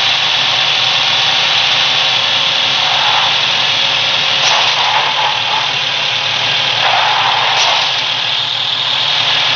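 A car engine drones steadily while driving over rough ground.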